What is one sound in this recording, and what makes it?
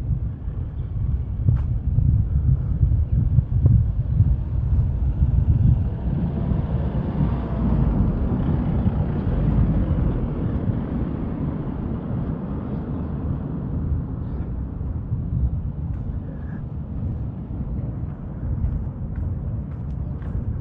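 Wind rumbles loudly against a moving microphone outdoors.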